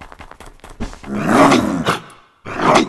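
A big cat snarls loudly.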